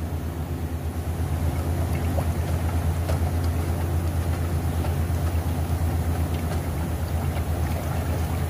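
A wooden stick stirs thick paint in a metal can, scraping the sides.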